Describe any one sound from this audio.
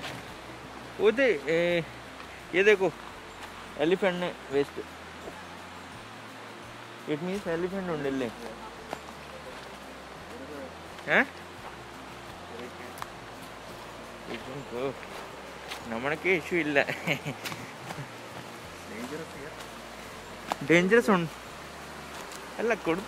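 A young man talks calmly and close by, in bursts with pauses.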